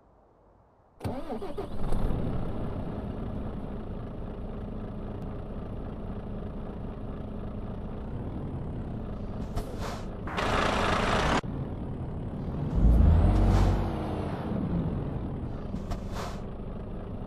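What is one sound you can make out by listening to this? A truck's diesel engine starts and idles with a low rumble.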